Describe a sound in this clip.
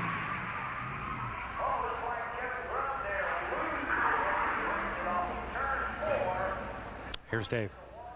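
Tyres screech and squeal on the track.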